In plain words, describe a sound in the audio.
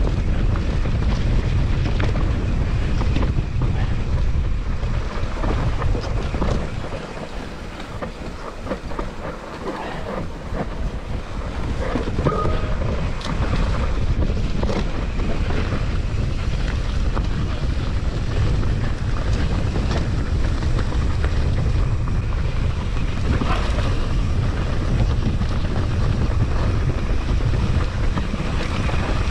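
A mountain bike's chain and frame clatter over bumps.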